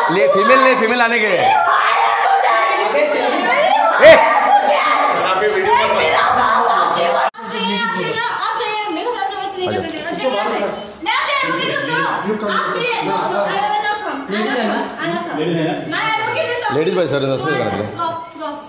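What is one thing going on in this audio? Several people talk loudly over one another close by.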